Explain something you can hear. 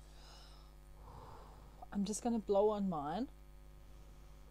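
A woman blows softly into a drink.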